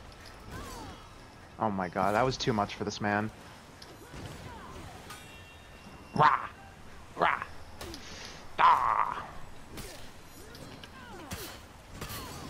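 Steel blades clash and ring sharply.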